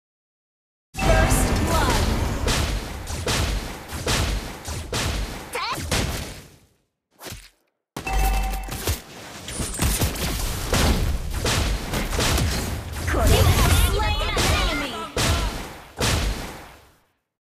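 Video game spell blasts and hits crackle and crash in a rapid fight.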